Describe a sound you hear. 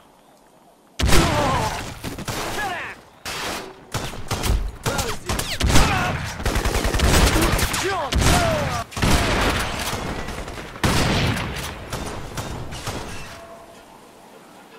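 Rapid gunfire rattles in close bursts.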